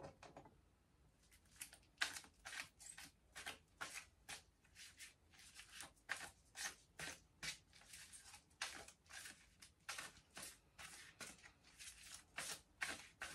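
A woman whispers softly and close up.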